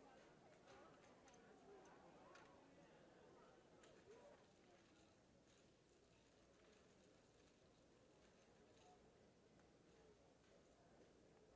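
Dominoes click as they are slid across a table.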